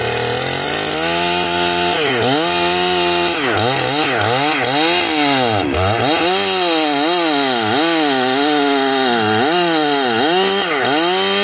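A chainsaw revs up and down repeatedly.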